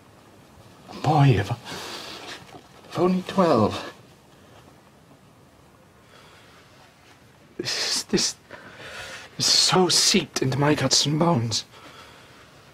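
A man speaks nearby in a strained, emotional voice.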